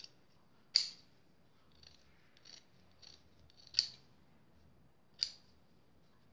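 Scissors snip through thick fabric.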